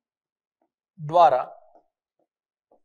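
A man speaks briefly with emphasis, close to a microphone.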